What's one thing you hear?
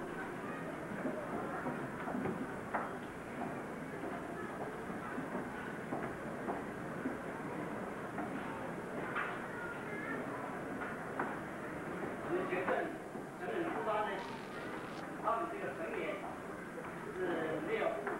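Footsteps tread on wooden steps.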